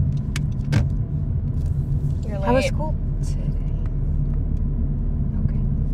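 A woman speaks close by inside a car.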